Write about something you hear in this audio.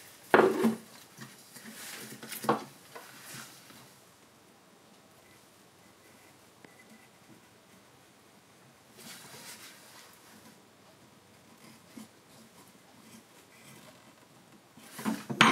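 A knife shaves thin curls from wood.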